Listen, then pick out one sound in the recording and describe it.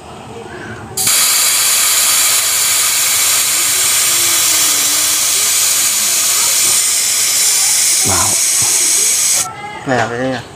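Air hisses out of a tyre valve.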